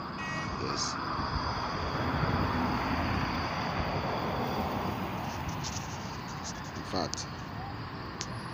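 Car engines rumble and tyres hiss on the road nearby.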